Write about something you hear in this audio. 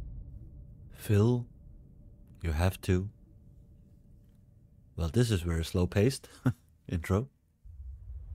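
A man speaks in short phrases close to a microphone.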